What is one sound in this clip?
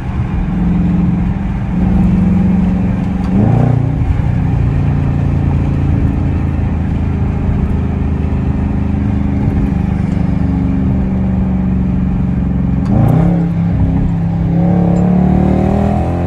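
A car engine hums and drones steadily, rising in pitch as it shifts gears.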